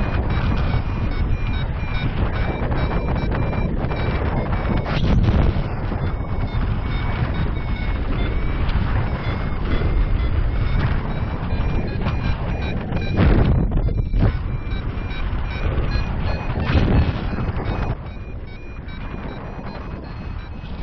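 Strong wind rushes and buffets loudly, outdoors high in the air.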